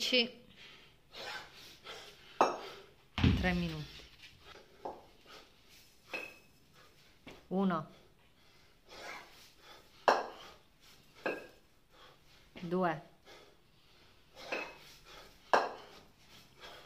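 A man breathes hard between lifts.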